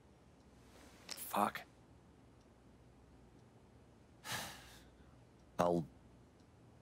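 A man speaks in a low, halting voice.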